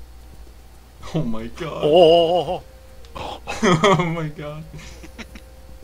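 A young man laughs and exclaims with excitement through a microphone.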